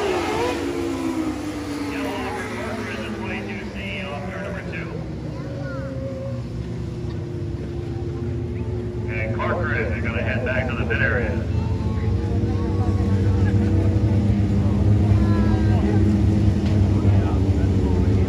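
Race car engines rumble low and steady as the cars slow down.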